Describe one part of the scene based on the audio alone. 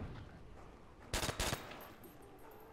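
Rifle shots crack sharply.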